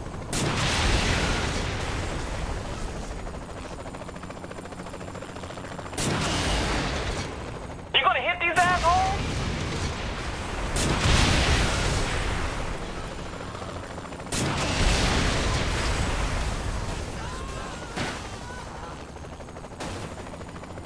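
A rocket launcher fires with sharp blasts.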